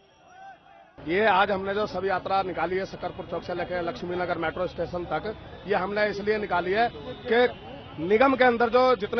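A man speaks firmly and loudly into a microphone close by.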